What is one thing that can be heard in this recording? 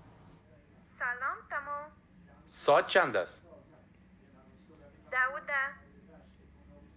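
A woman speaks through a small device speaker.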